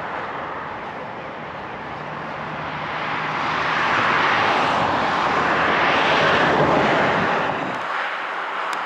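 A truck engine rumbles as the truck pulls slowly past.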